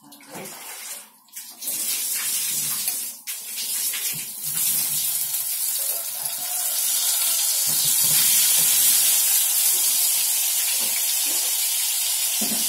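Food sizzles and crackles loudly in hot oil.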